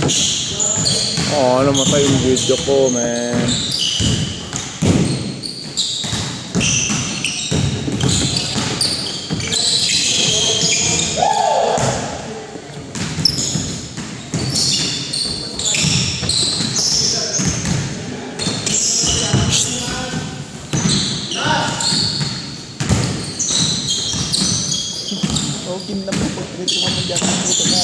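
Young men call out to each other across a large echoing gym.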